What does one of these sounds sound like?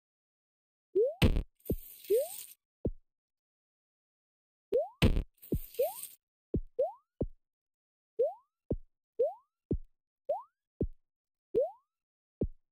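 Short rising blips sound as a game character jumps.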